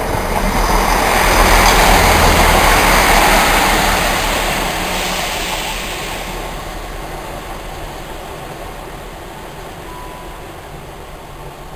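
A train rushes past close by with a loud roar, then fades into the distance.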